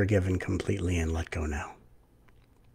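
A middle-aged man speaks calmly into a headset microphone, heard as over an online call.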